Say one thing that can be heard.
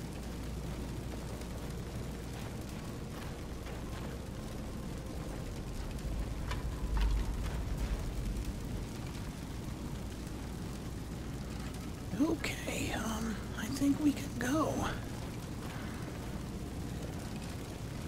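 A fire crackles nearby.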